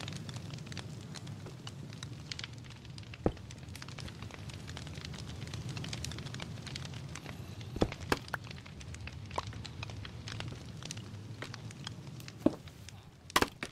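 Blocks are placed with short soft thuds.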